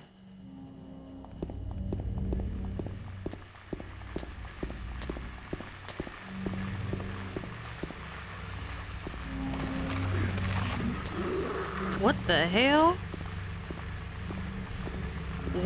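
Footsteps run quickly along hard ground.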